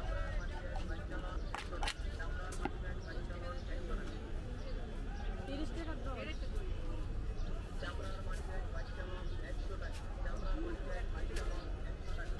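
Several men talk nearby amid a small crowd outdoors.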